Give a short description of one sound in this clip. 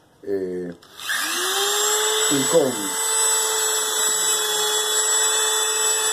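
A rotary tool whirs at high speed, grinding wood.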